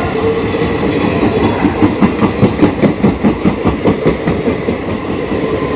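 Train wheels clatter rapidly over rail joints.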